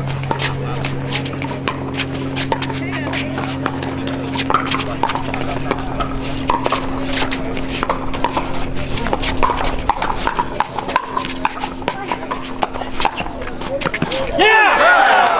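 Paddles hit a plastic ball with sharp pops.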